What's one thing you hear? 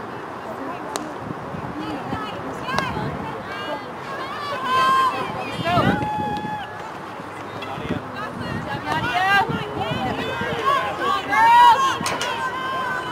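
A hockey stick strikes a ball with a sharp crack.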